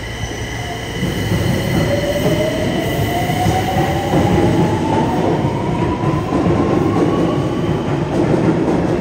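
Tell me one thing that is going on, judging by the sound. A train rumbles and clatters loudly along the track, echoing in the station.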